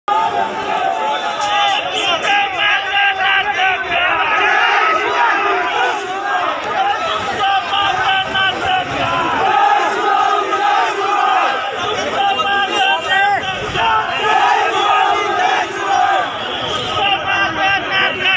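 A large crowd of men cheers and chants loudly close by.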